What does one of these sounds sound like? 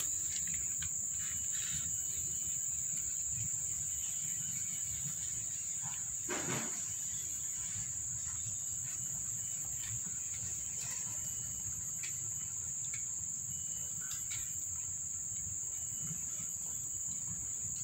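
Kittens suckle with soft wet sounds.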